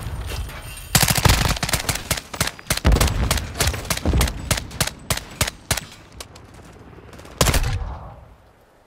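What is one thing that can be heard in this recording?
A rifle fires rapid bursts of gunshots close by.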